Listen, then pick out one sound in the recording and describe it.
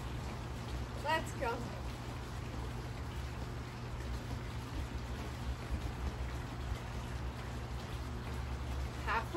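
A woman speaks briefly and cheerfully, close by.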